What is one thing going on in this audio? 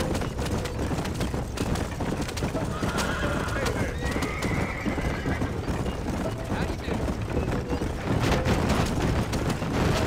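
Horses' hooves clop on the dirt.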